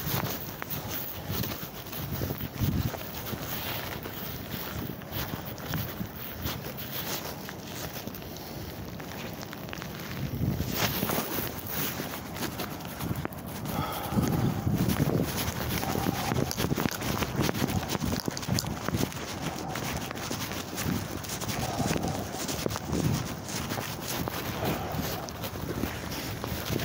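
Bare feet pad on the ground with steady footsteps.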